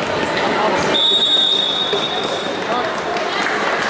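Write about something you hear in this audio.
A referee's whistle blows one long, shrill note.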